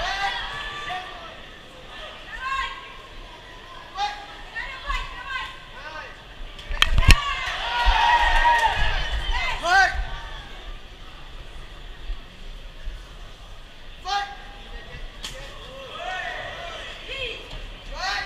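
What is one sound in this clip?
A crowd shouts and cheers in a large echoing hall.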